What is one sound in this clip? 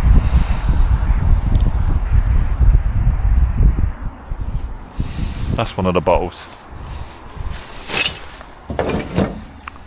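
Plastic bottles and bags crinkle and rustle as they are handled.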